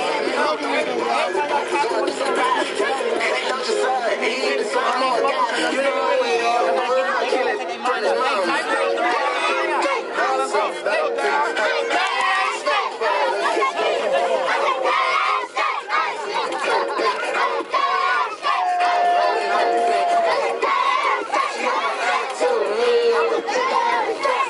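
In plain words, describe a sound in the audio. A crowd of children and men shout and chant excitedly outdoors.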